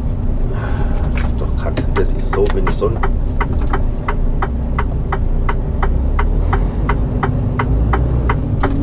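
A turn signal ticks rapidly.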